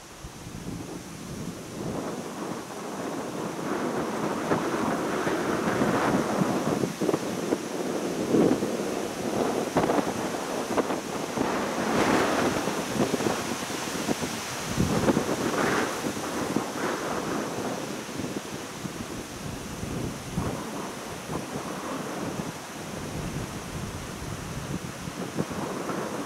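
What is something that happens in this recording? Wind blows in gusts across open ground.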